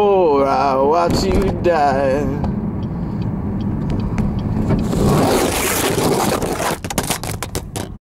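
A car engine hums steadily from inside the car as it drives.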